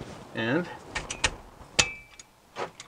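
A metal wrench clinks against a bolt.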